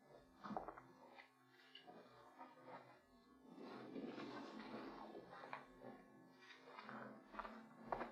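A bag rustles as it is handled.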